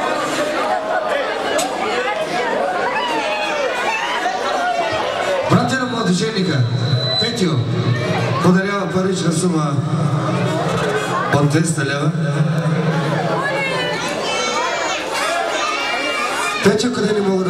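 A man speaks loudly through a microphone over a sound system.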